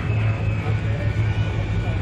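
A crowd of men chat nearby outdoors.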